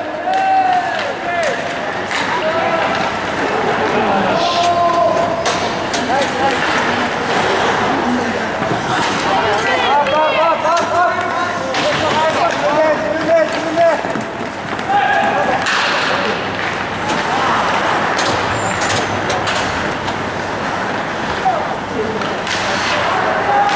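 Skates scrape and swish across ice.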